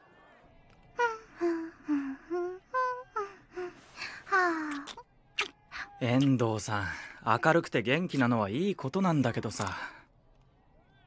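A young woman speaks softly and playfully.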